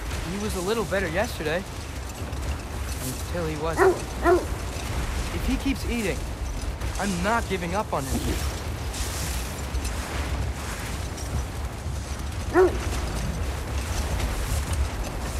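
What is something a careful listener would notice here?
A sled's runners hiss over snow.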